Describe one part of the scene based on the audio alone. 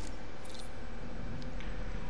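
A handheld electronic device beeps and whirs.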